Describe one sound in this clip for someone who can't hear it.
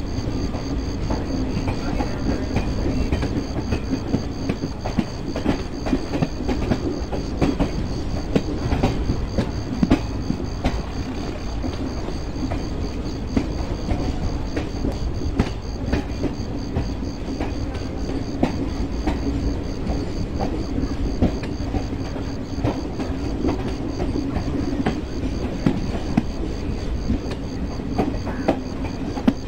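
A train rumbles steadily along the tracks, with wheels clicking over rail joints.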